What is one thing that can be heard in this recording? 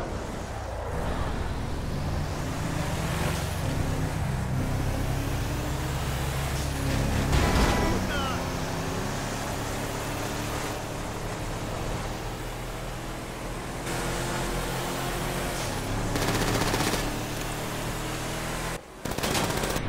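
A car engine hums steadily as it drives at speed.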